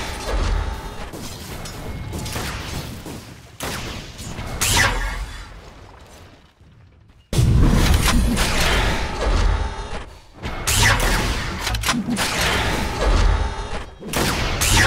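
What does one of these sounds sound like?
Magic spells crackle and whoosh during a fantasy battle.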